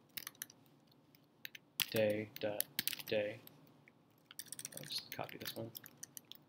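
Keys clatter quickly on a keyboard.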